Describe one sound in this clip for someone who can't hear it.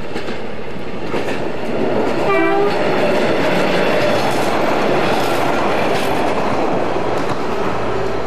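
A locomotive rumbles and clatters past on the rails.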